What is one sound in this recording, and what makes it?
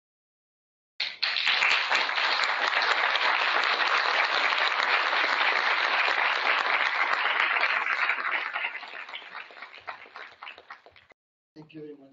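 An audience applauds loudly, then the clapping fades out.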